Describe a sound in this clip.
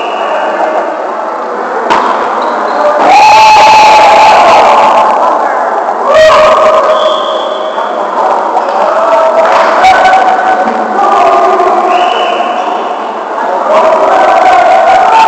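Men shout and call out to each other in a large echoing gym.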